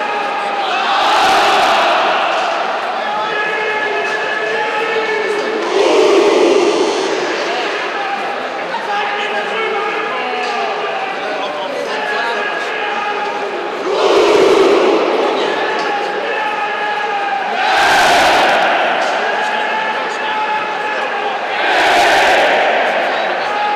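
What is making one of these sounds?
A large crowd of fans roars and shouts in bursts every few seconds.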